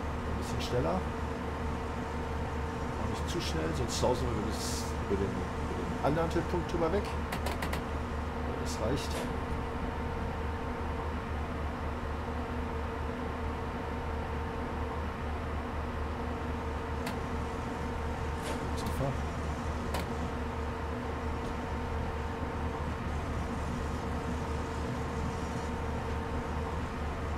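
Train wheels clatter over rail joints now and then.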